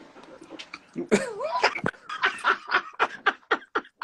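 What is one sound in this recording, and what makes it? Men laugh heartily through an online call.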